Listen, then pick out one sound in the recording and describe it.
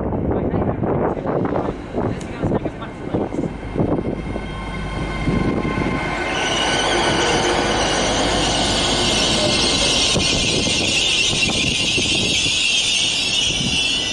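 A train's engine hums and whines loudly as the train pulls away close by.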